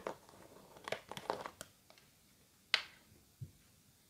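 A plastic lid twists off a jar.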